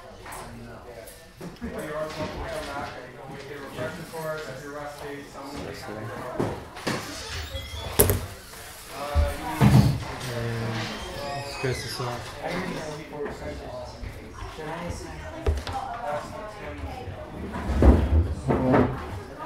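Game pieces click on a table.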